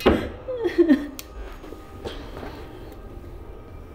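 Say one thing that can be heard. A young woman groans and whimpers in distress close by.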